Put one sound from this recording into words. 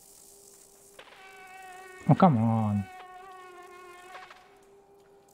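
A large insect buzzes close by with a droning hum.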